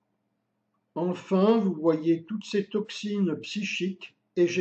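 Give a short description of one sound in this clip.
An elderly man speaks calmly close by.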